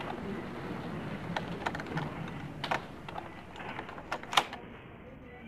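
A metal lock clicks and rattles as it is picked.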